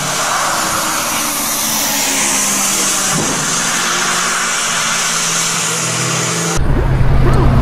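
A sports car engine revs as the car slides on a wet track.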